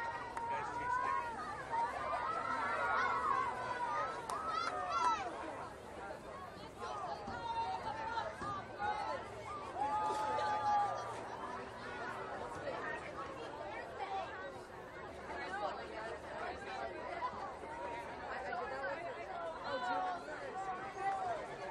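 A crowd of spectators cheers and shouts outdoors at a distance.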